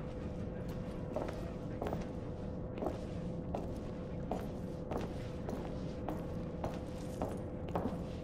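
Heavy footsteps clang on metal stairs at a steady pace.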